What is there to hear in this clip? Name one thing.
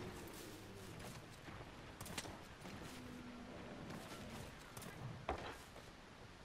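A blade hacks into a carcass with wet, fleshy thuds.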